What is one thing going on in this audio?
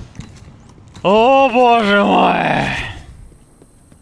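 A creature lets out a loud falling screech.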